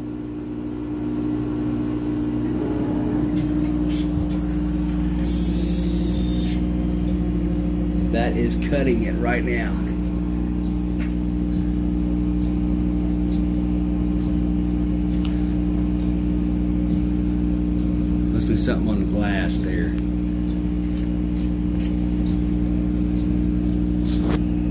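A machine hums steadily, with a low, even drone.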